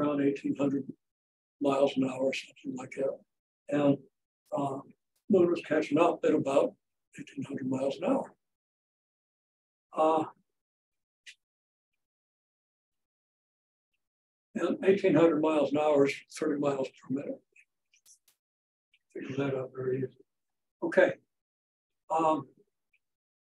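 An elderly man lectures calmly and clearly, close by, with pauses between phrases.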